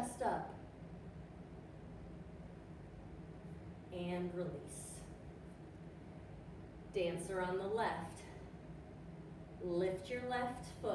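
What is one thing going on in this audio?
A woman speaks calmly and clearly, as if instructing.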